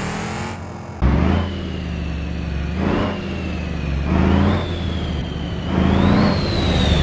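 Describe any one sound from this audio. A truck engine roars and revs through rising gear changes.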